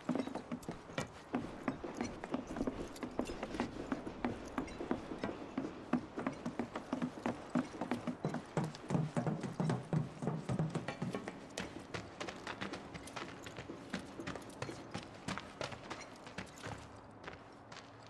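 Footsteps thud quickly on wooden floorboards.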